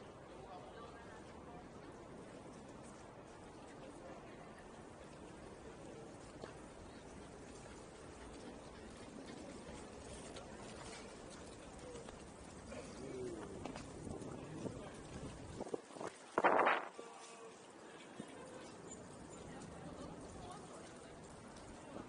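A distant crowd murmurs steadily outdoors.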